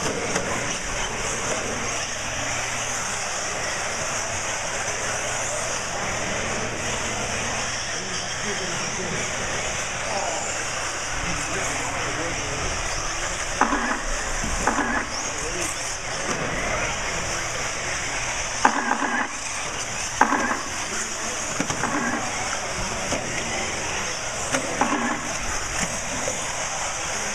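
Small electric model cars whine loudly as they race around a track.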